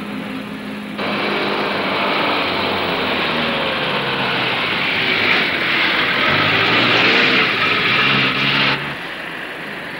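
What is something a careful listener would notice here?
A vehicle engine roars loudly as it drives close by.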